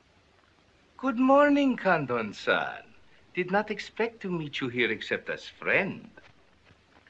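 An older man speaks calmly and with amusement.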